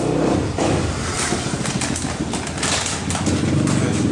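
A foil bag rustles and crinkles.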